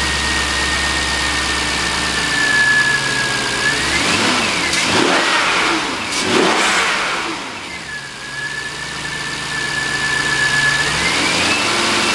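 A car engine idles with a steady hum and a high whine.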